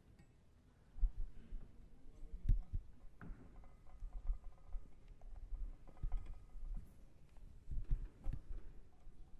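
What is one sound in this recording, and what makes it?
A piano lid creaks and thumps as it is raised and propped.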